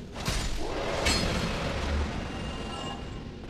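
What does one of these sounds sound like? A burst of sparkling magic crackles and whooshes.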